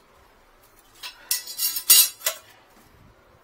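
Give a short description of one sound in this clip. A metal drain grate clatters on a tile floor.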